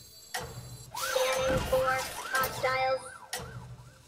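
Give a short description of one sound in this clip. Bright game chimes and whooshes ring out as cards are played.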